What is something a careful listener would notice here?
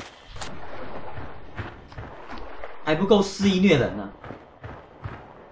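Footsteps fall steadily on a hard floor.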